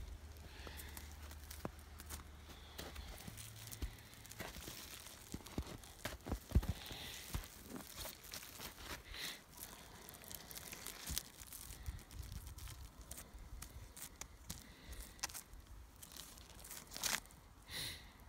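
Plastic wrap crinkles and rustles under a hand.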